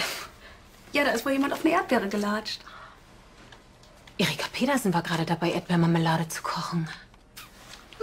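A woman speaks in a low, serious voice.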